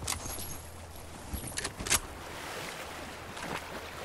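Water splashes as a character swims.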